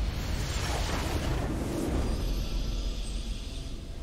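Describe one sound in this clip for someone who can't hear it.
A game's victory fanfare sounds.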